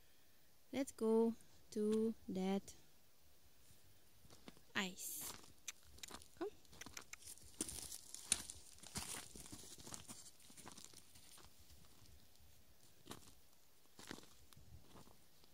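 A horse's hooves crunch and squelch on wet snow and mud.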